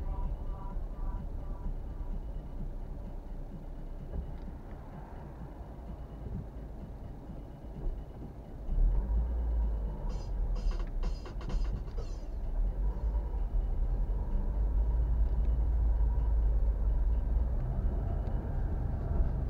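A car engine hums steadily, heard from inside the cabin.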